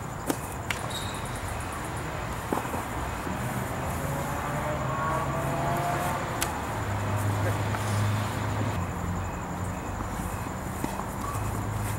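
Hands slap against arms in sharp, scattered smacks.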